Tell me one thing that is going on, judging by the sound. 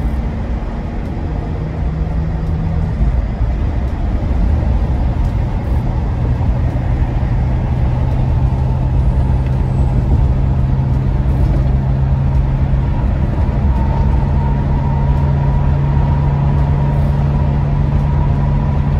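A car engine hums steadily from inside the cabin, with a deep rumble.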